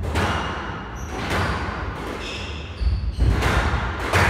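Shoes squeak sharply on a wooden court floor.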